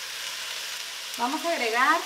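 Sauce pours softly onto bean sprouts.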